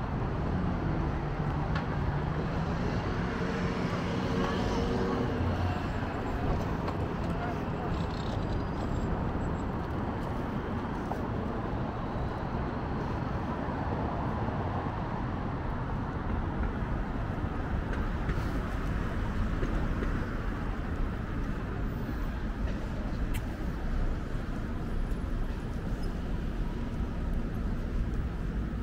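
City traffic rumbles steadily in the distance.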